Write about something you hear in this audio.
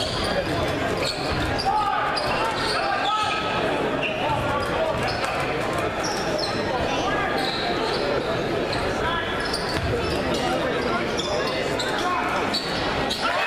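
A crowd chatters and cheers loudly in a large echoing gym.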